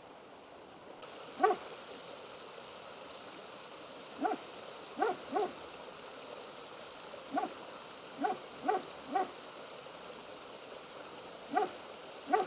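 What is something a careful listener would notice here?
A small stream trickles over rocks outdoors.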